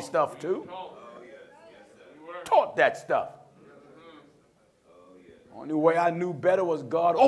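A man preaches forcefully through a microphone in an echoing hall.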